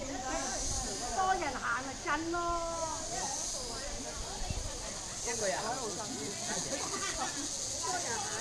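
Several young women chat and call out close by, outdoors.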